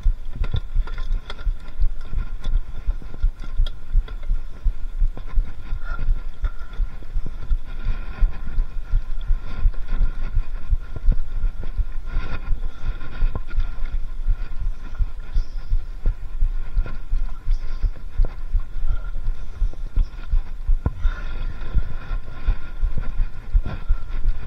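A bicycle chain and frame clatter and rattle over the bumps.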